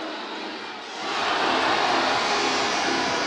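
A crowd roars loudly.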